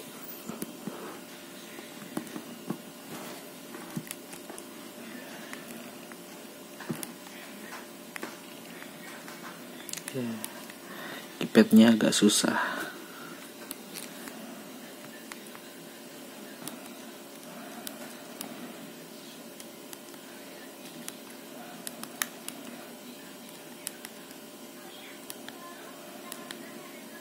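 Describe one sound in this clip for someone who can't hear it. Phone keys click softly as a thumb presses buttons.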